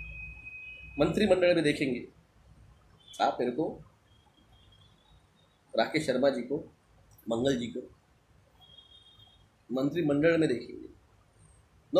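A middle-aged man speaks with animation close to a microphone, in short bursts with pauses.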